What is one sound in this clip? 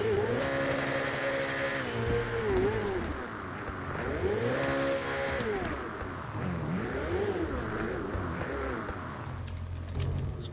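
A car engine revs and hums as it drives.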